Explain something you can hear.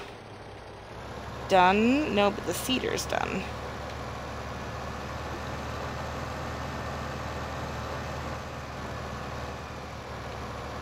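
A tractor engine rumbles steadily as it drives.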